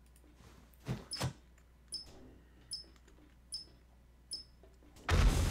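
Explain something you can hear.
Electronic beeps sound as keys are pressed on a keypad.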